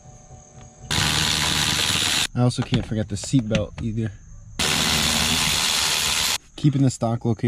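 A cordless ratchet whirs in short bursts, loosening bolts.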